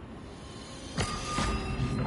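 A whooshing electronic burst sounds as an item is bought.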